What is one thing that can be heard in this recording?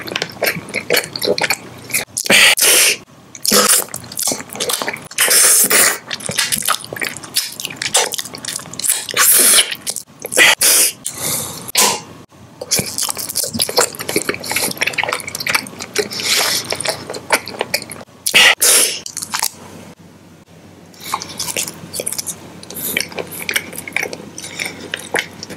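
A man makes wet lip and mouth sounds very close to a microphone.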